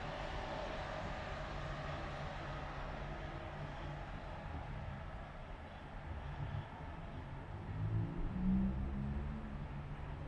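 A train rumbles across a bridge nearby.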